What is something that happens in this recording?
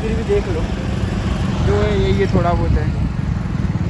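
A young man speaks close by with animation.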